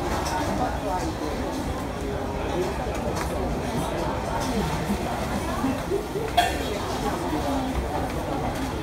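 Many people chatter nearby in a busy, noisy crowd.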